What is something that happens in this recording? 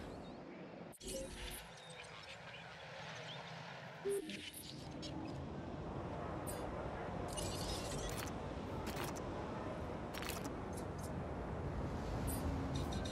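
Short soft clicks and chimes of a game menu sound now and then.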